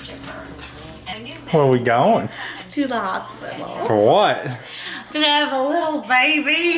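A young woman laughs and talks cheerfully close by.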